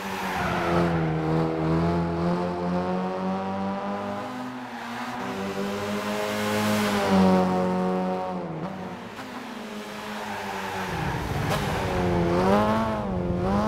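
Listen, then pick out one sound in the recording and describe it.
A car engine revs high, rising and falling in pitch.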